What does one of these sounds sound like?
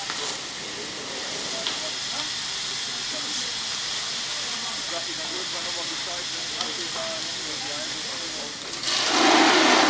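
A fire hose sprays a strong, steady jet of water with a loud hiss.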